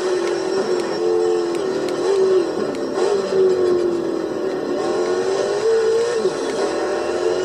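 A racing car engine roars, its pitch rising and falling as it shifts gears.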